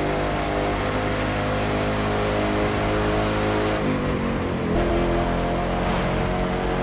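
A sports car engine roars steadily at high speed.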